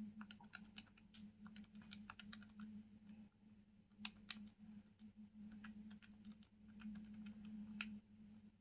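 Fingers tap quickly on plastic calculator keys.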